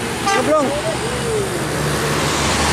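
A bus horn plays a bending musical tune.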